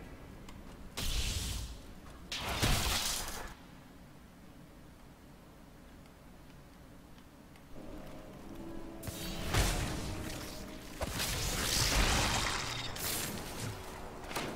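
Game spells whoosh and blast in bursts.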